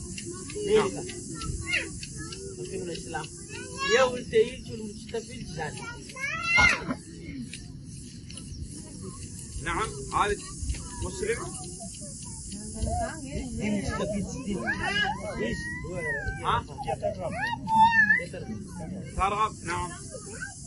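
A man speaks calmly outdoors.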